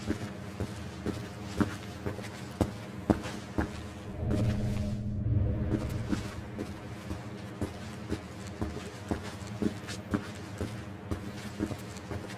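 Footsteps crunch over leaves and debris at a steady pace.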